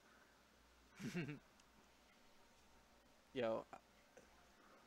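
A young man laughs briefly into a close microphone.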